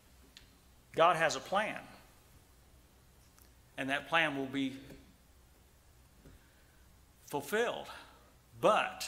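A middle-aged man speaks slowly and emphatically into a microphone, with pauses between phrases.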